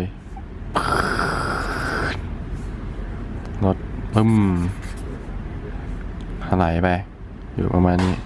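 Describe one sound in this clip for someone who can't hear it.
A pen scribbles on paper.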